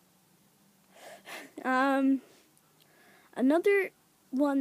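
A young boy sings out in a high, playful voice close by.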